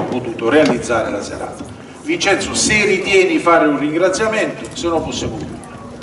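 A man speaks expressively into a microphone.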